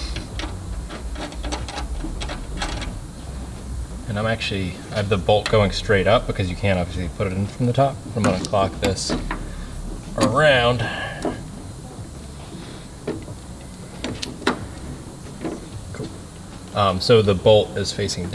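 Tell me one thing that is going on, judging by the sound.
Metal parts click and clink faintly as a bolt is turned by hand.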